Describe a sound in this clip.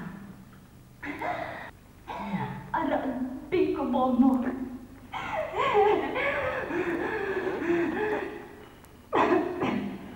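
A man speaks in a low, strained voice close by.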